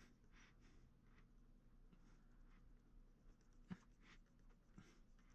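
A sculpting tool scrapes softly against clay.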